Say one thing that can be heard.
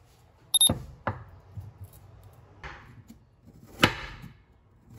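A knife cuts through a bell pepper and knocks on a wooden board.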